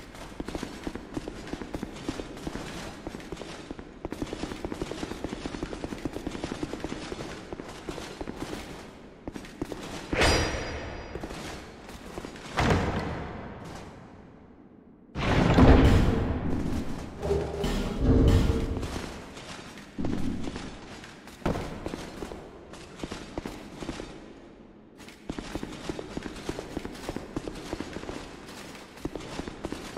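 Footsteps run quickly on stone steps.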